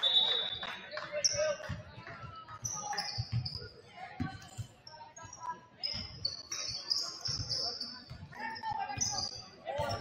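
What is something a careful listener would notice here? A crowd of spectators murmurs and calls out.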